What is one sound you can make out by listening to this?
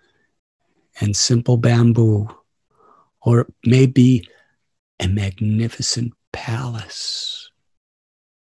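An elderly man speaks calmly and thoughtfully into a microphone, heard as if over an online call.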